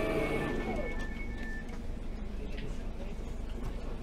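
Train doors slide open.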